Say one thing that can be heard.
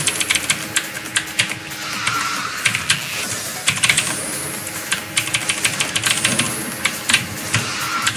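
Game sound effects click and pop repeatedly.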